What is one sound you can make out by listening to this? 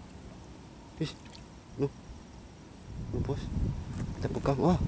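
A net splashes into shallow water.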